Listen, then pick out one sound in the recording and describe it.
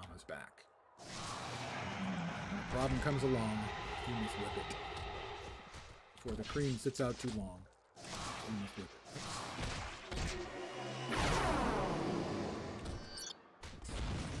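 Magic blasts whoosh and crackle during a fight in a video game.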